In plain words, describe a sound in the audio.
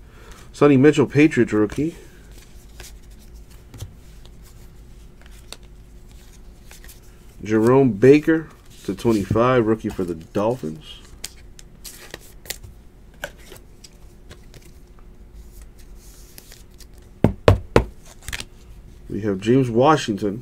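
Trading cards rustle and slide softly in hands.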